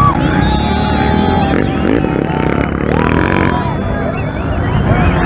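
A motorbike engine revs loudly and roars past.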